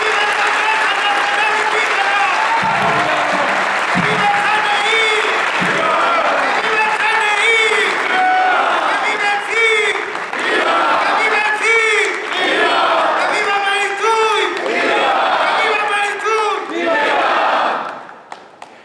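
A crowd chants loudly in unison in a large hall.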